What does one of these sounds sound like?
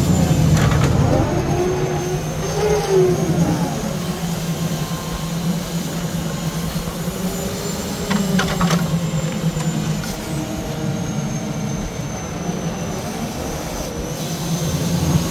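A hydraulic crane whines as it moves.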